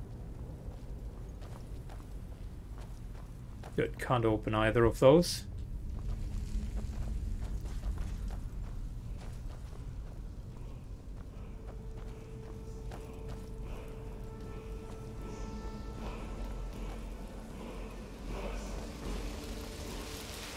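Footsteps tread slowly over stone and gravel.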